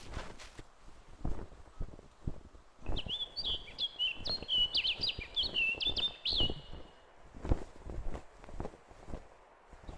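Footsteps crunch and rustle through grass and bushes.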